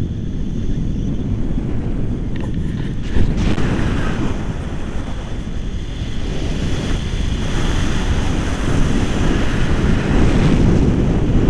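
Wind buffets and roars loudly against the microphone.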